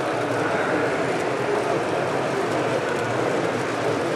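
A model diesel locomotive hums as it rolls by.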